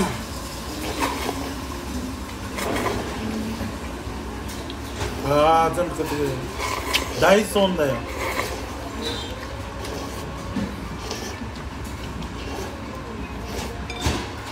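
A man slurps ramen noodles and broth from a bowl.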